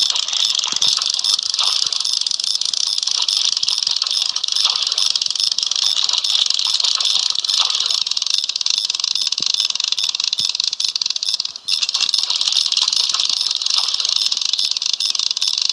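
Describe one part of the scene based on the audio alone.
A fish splashes at a float on the water.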